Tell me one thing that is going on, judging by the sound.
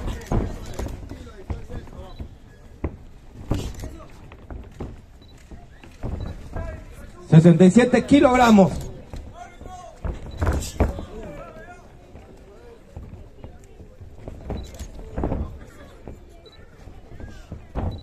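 A crowd cheers and shouts in the open air.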